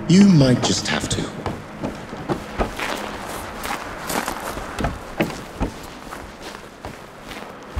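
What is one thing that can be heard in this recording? Footsteps thud on wooden planks and crunch on snowy ground.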